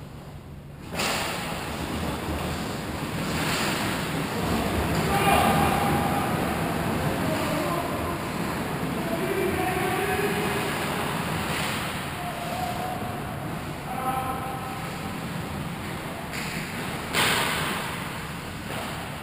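Skate blades scrape and hiss across the ice in a large echoing rink.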